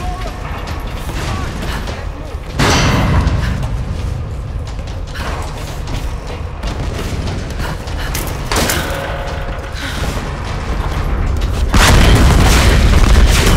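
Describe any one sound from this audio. A fire roars.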